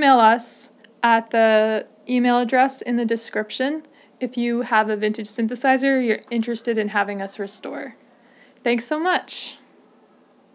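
A woman talks calmly and with animation, close to a microphone.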